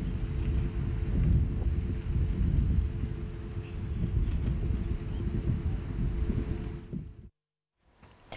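Low wind rumbles outdoors.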